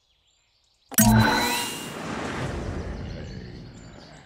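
A loud game sound effect bursts out and slowly fades.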